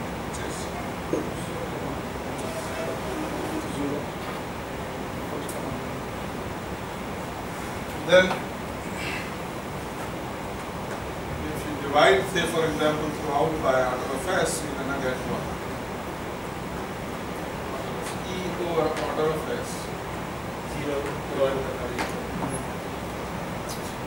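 A man lectures in an echoing room, speaking calmly.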